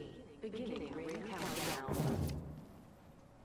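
A gun fires a quick burst of shots.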